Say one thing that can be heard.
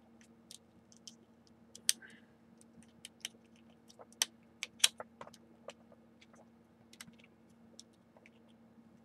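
Plastic joints of an action figure click and snap as hands handle it.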